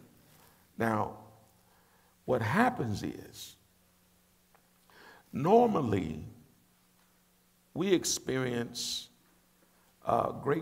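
A middle-aged man speaks emphatically into a nearby microphone, with short pauses between phrases.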